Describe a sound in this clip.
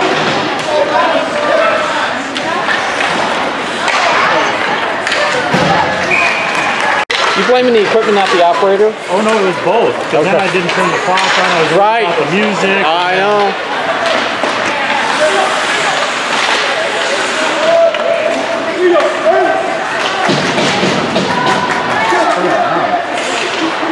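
Skates scrape and hiss across ice.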